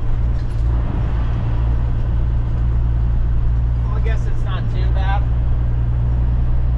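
A heavy truck engine rumbles steadily from inside the cab.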